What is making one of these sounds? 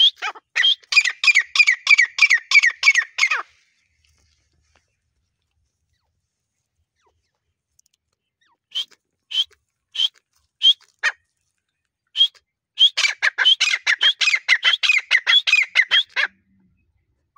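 A partridge calls close by with rapid, harsh, repeated chirps.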